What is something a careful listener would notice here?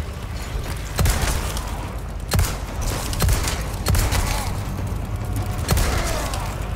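A pistol fires several sharp shots.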